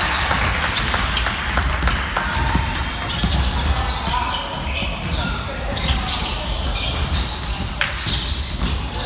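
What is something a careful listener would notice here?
Young men shout and call out across a large echoing gym.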